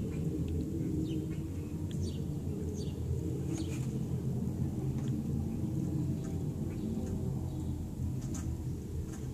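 Dry straw rustles as hens shift in their nests.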